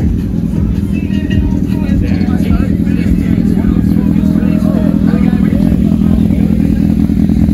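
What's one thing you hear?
Men talk casually at a distance outdoors.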